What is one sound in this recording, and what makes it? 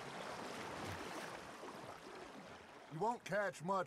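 Oars splash and dip in calm water.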